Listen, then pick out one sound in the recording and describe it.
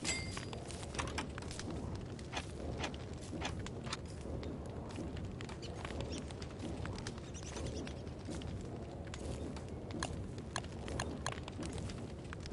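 Soft menu clicks tick now and then.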